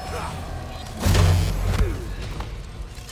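A heavy body thuds to the ground.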